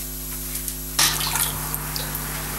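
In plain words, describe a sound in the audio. Water sloshes as a hand moves in a pot.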